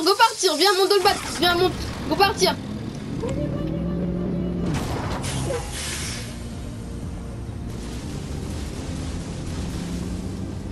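A truck engine rumbles and revs as the truck drives over rough ground.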